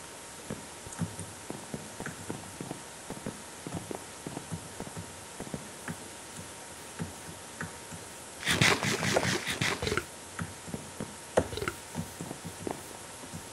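Footsteps tread softly on grass.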